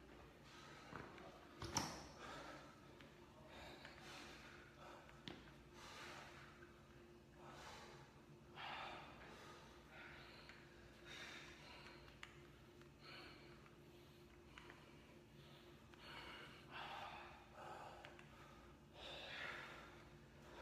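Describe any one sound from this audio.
A man exhales sharply with each dumbbell lift.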